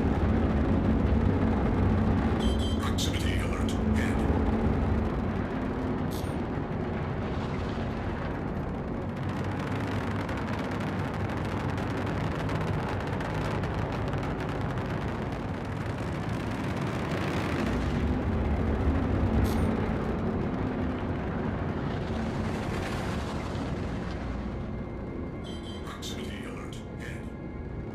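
A spacecraft's engines roar with a deep rumble in flight.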